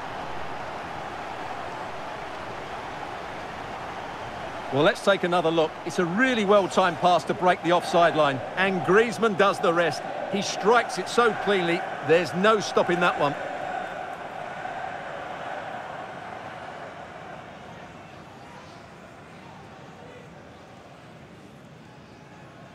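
A stadium crowd roars steadily and slowly fades.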